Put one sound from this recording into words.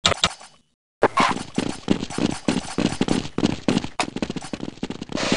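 Boots thud quickly on stone as several people run.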